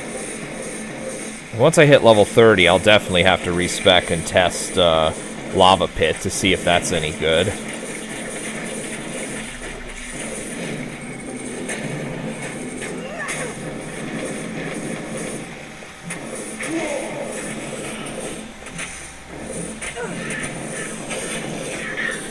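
Magic spells crackle and burst in rapid succession.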